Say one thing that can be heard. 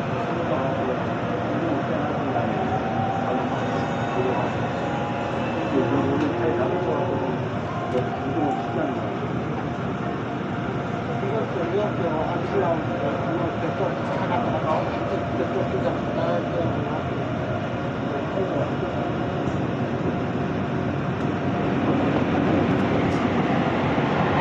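A train rumbles steadily along the tracks from inside a carriage.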